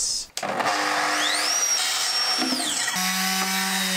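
A circular saw whines up, cuts and winds down.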